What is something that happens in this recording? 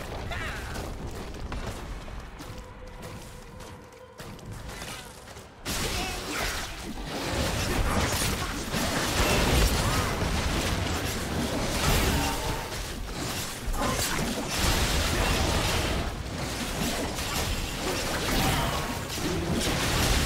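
Game sounds of spells and attacks clash in a fight.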